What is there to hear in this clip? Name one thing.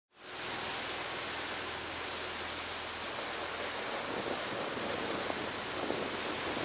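Waves slosh and lap nearby.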